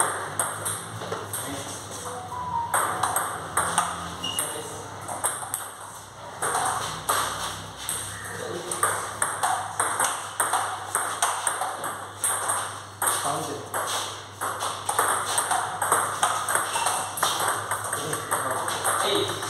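A table tennis ball clicks quickly back and forth between paddles and bounces on a table.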